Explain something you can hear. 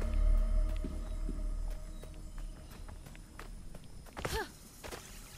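Light footsteps patter quickly over grass.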